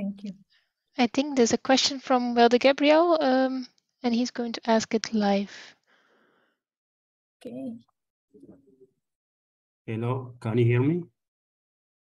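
A young woman speaks calmly into a headset microphone over an online call.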